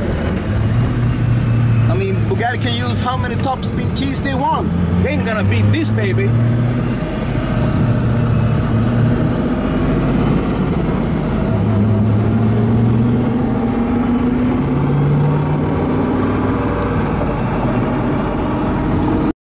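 A car engine roars loudly as the car speeds along and shifts gears.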